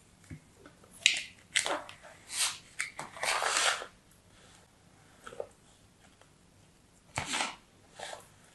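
Fingers rake and scratch through sand in a plastic tray.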